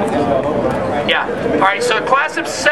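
A man's voice calls out through a megaphone.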